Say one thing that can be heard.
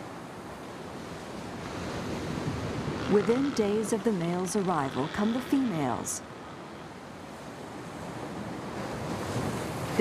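Surf crashes and washes onto a beach.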